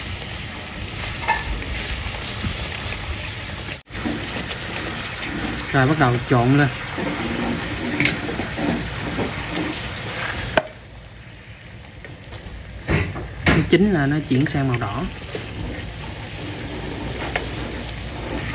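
Liquid simmers and bubbles in a pan.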